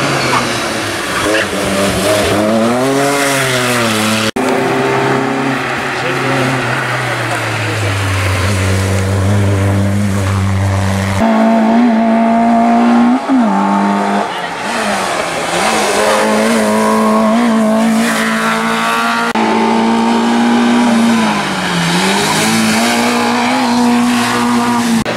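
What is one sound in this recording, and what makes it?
Rally car engines roar and rev hard as cars climb past one after another.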